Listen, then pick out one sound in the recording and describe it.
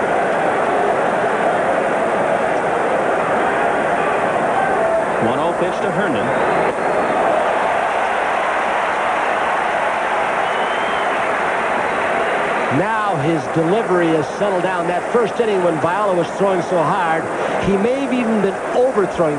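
A large crowd roars in a big stadium.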